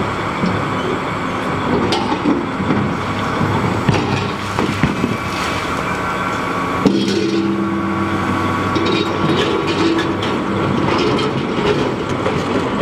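Rocks clatter and knock against a metal bucket.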